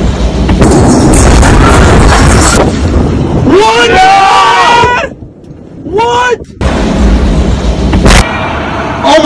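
A massive explosion booms and rumbles.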